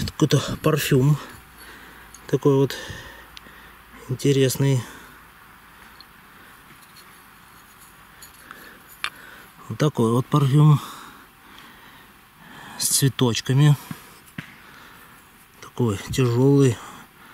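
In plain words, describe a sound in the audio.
Glass bottles clink together as they are picked up and handled.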